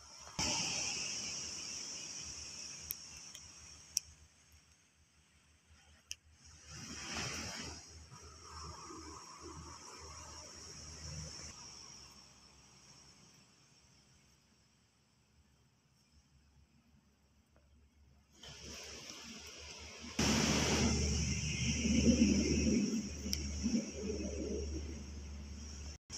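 A hermit crab's shell drags and scrapes softly over sand and dry pine needles.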